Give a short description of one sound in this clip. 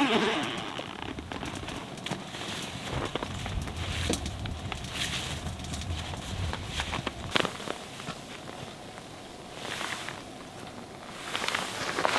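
Heavy rain pours down outdoors and patters on a tent.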